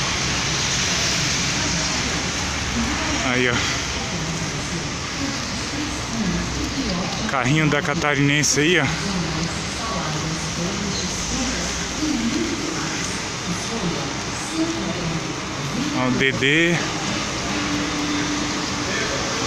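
A large bus engine idles with a steady low rumble.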